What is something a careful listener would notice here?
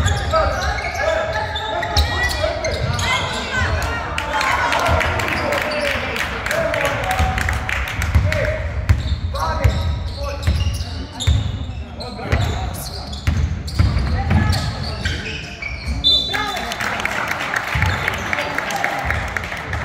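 Young male players shout to each other in a large echoing hall.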